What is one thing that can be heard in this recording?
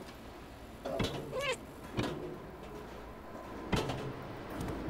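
A cat lands with dull thumps on metal and wood as it jumps down.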